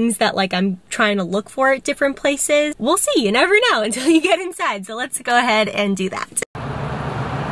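A young woman talks cheerfully close by.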